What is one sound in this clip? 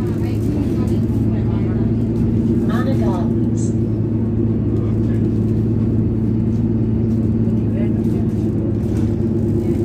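A bus engine hums steadily, heard from inside the bus.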